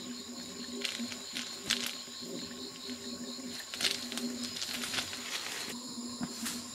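A plastic sack rustles as it is handled.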